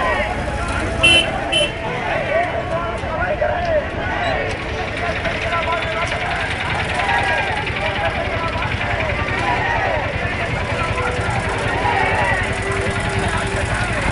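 A large crowd of men talks and shouts at once outdoors.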